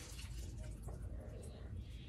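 Water pours into a glass.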